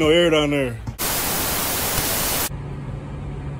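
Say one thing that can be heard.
Loud static hisses steadily, then cuts off.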